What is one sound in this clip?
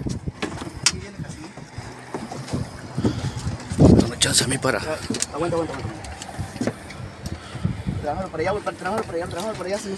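Water laps and splashes against the side of a small boat.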